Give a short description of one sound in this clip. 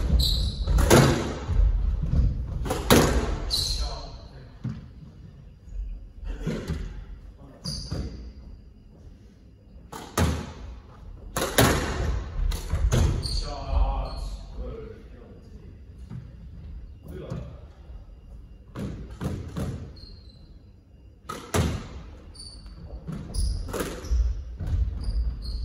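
Squash rackets smack a ball against the front wall in an echoing court.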